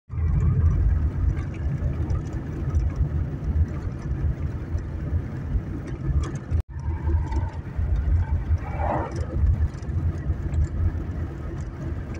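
Tyres rumble steadily on a paved road.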